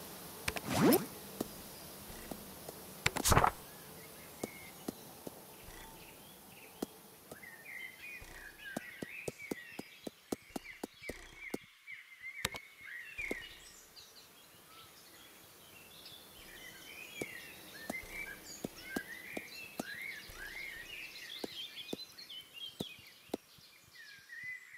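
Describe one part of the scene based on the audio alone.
Short game menu clicks tick again and again as selections change.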